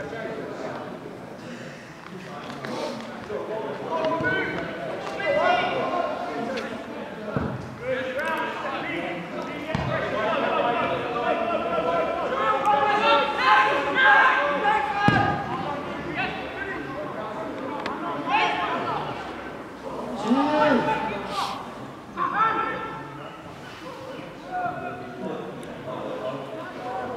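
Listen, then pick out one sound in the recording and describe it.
Men shout across an open pitch outdoors.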